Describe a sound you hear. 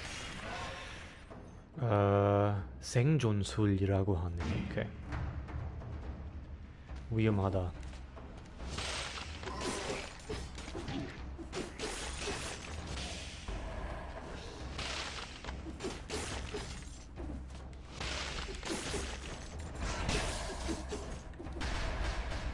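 A man talks into a microphone with animation.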